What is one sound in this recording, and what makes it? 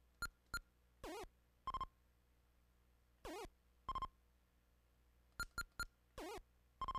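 A warbling electronic tone wobbles up and down in short bursts.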